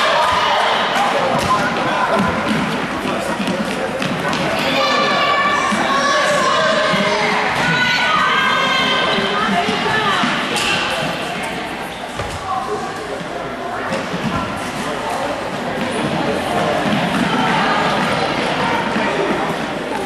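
Young girls shout and call out in a large echoing gym.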